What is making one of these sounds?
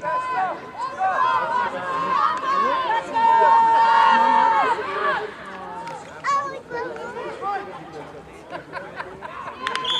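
Spectators call out and cheer nearby.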